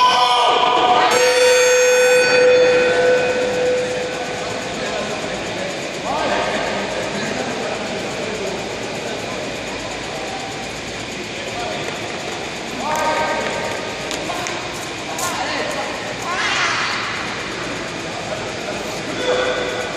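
Voices of a crowd murmur and call out in a large echoing hall.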